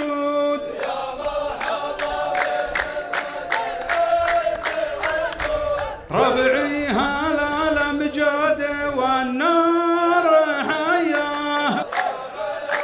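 A man recites loudly into a microphone.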